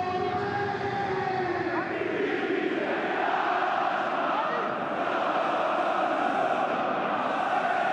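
A large crowd roars and chants steadily.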